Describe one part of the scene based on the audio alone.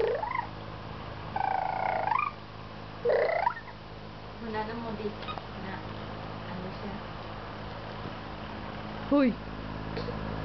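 A young child squeals and babbles close by.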